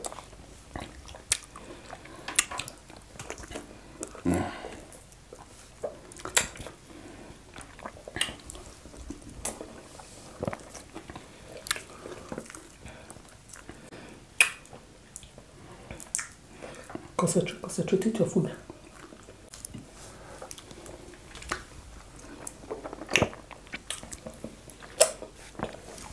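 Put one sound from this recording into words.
A man and a woman chew and smack loudly close to a microphone.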